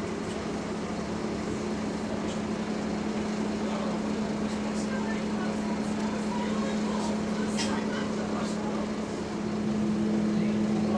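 An engine hums steadily from inside a moving bus.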